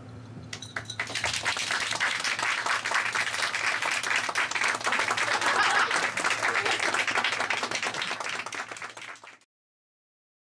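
A small audience applauds, then the applause stops.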